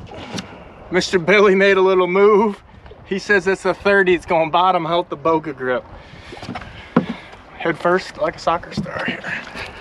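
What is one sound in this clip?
A man talks with animation close by, outdoors in wind.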